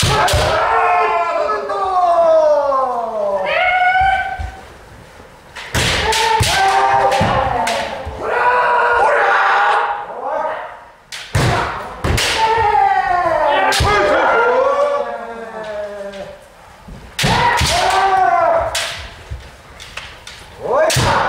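Kendo fencers let out long, drawn-out war cries in a large echoing hall.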